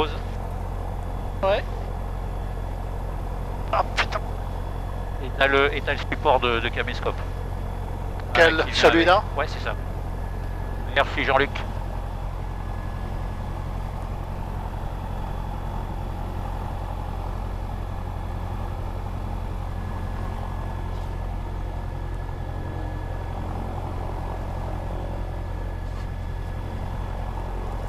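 An aircraft engine hums steadily.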